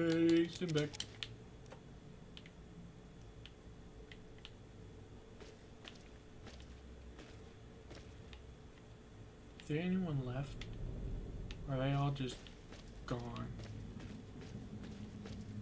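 Footsteps tread slowly across a gritty floor.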